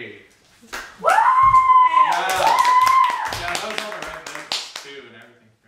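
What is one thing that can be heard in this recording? A man laughs and cheers loudly nearby.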